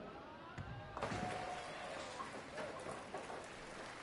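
A bowling ball crashes into pins, which clatter and scatter.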